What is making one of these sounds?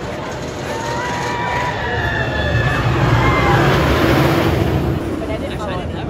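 A roller coaster train rumbles and roars along a track.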